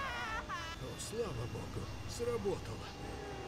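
A man speaks with relief, close by.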